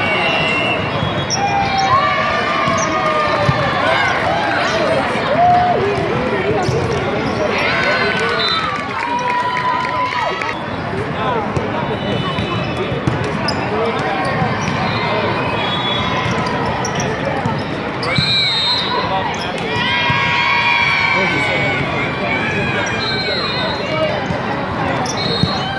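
Players' shoes squeak sharply on the court.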